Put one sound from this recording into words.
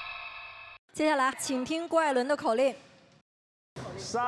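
A young woman speaks brightly into a microphone.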